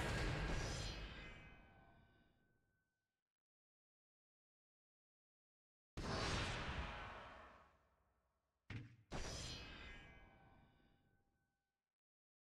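A deep, booming chime rings out and slowly fades, several times.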